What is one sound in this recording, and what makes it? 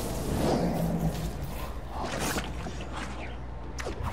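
Heavy blows land with dull thuds.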